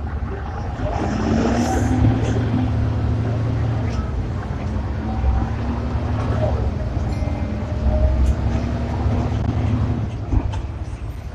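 A bus engine whines higher as it speeds up, then eases off.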